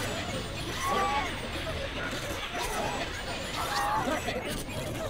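Bright game chimes ring out for each well-timed hit.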